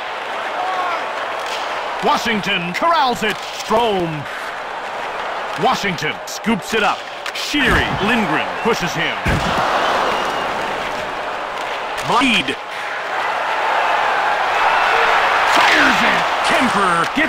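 Hockey sticks slap a puck with sharp clacks.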